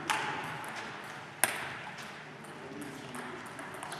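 A table tennis ball bounces on a table.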